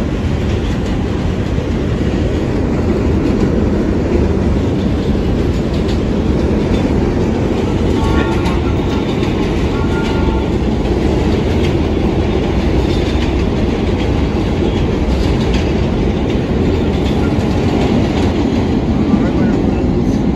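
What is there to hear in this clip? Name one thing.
A vintage subway train rumbles past on the next track.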